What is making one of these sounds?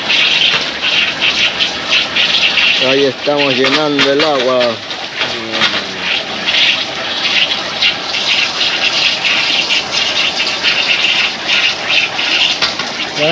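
Water sprays and splashes into a plastic barrel.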